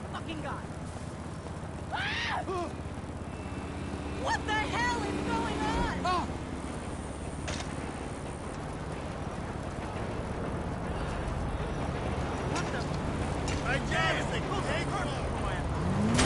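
Bicycle tyres roll steadily over a road.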